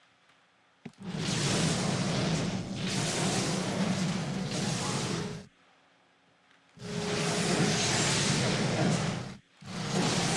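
Fire roars and crackles in loud bursts.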